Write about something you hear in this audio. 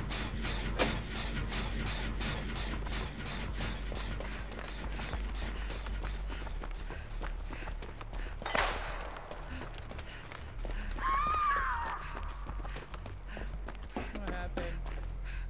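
Footsteps crunch quickly over dry leaves and gravel.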